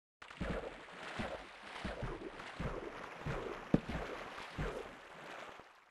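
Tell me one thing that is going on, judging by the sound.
Water trickles and splashes nearby.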